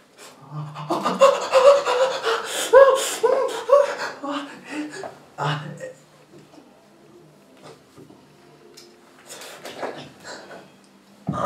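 A young man screams and groans in pain close by.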